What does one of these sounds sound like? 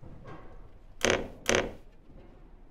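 A small wooden cabinet door creaks open.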